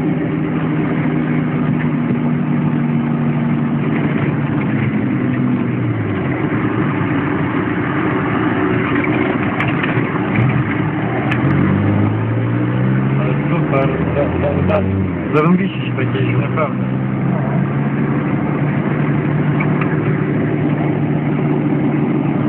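A vehicle engine hums steadily and changes pitch as it shifts gears.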